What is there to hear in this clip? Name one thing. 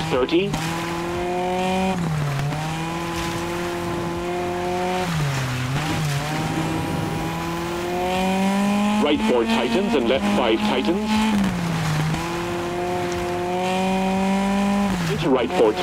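A rally car engine revs hard, dropping briefly with each gear change.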